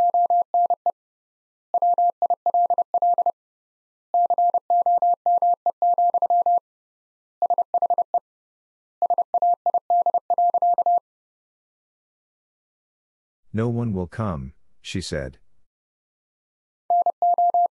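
A telegraph key taps out Morse code in short and long steady beeps.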